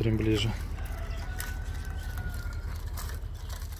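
Small caged birds chirp softly.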